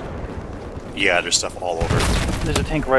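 A loud explosion booms nearby.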